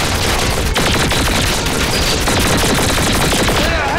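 A gun fires rapid bursts.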